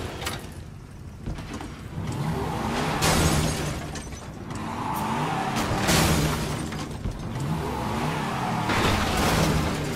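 A car engine cranks and sputters.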